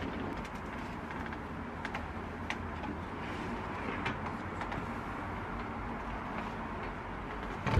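A small appliance knocks and clicks as it is handled.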